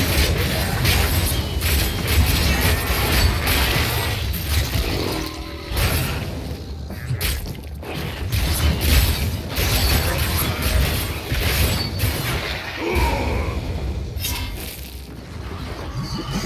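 Spells and weapons crash and burst in a fast game battle.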